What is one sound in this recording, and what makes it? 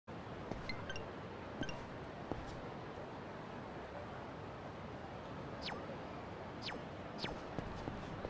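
Menu beeps chime.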